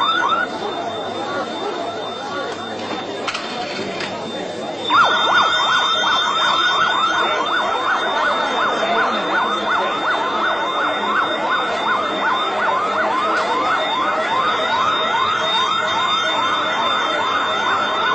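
A crowd of men and women chatters in a busy, echoing hall.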